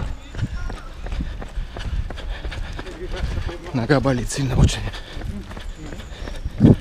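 Running footsteps thud on pavement.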